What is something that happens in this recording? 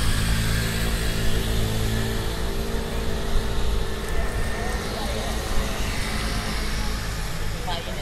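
A scooter engine idles close by.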